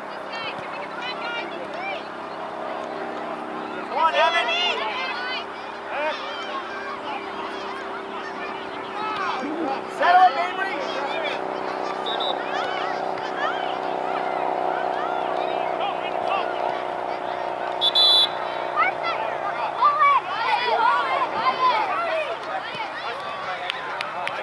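Spectators shout and cheer from the sidelines outdoors.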